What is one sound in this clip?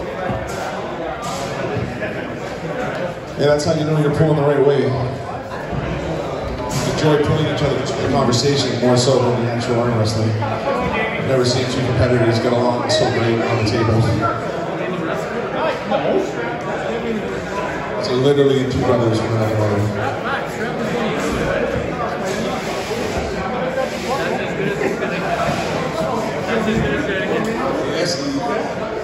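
A small crowd of men talk and call out in the background.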